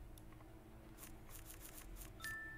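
A feather duster brushes with quick, soft swishes.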